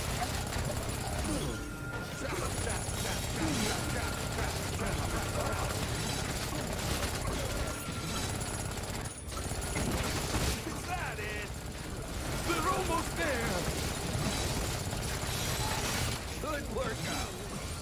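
Game combat sounds clash and crackle throughout.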